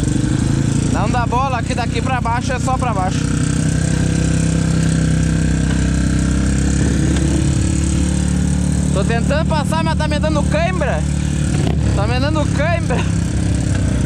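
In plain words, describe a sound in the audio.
A dirt bike engine revs hard in short bursts.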